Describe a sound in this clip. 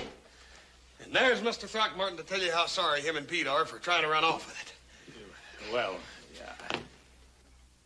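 A man speaks loudly and angrily.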